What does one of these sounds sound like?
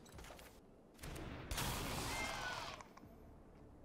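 A soft magical whoosh sounds as a game card is played.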